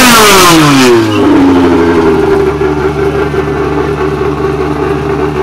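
A car engine revs loudly and then drops to a steady rumbling idle.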